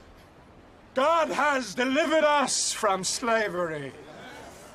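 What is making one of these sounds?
A man speaks loudly and forcefully, close by.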